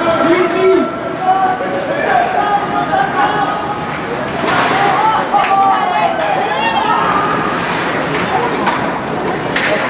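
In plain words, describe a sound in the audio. Spectators chatter and call out in a large echoing arena.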